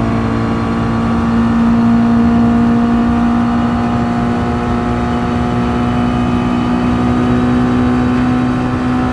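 A racing car engine roars at high revs, its pitch slowly rising as it speeds up.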